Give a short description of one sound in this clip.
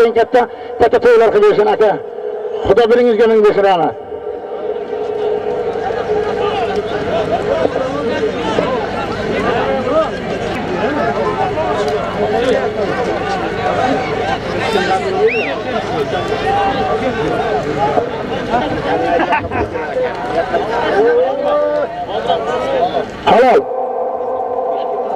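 A crowd of men shout outdoors.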